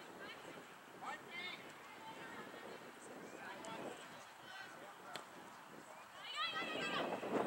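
Young women shout to each other across an open field, heard from a distance.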